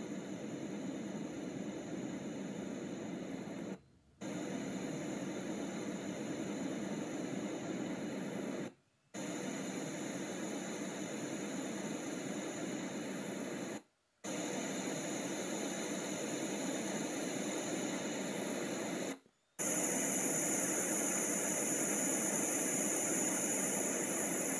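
A sound machine plays a steady rushing noise that cuts out briefly and changes tone every few seconds.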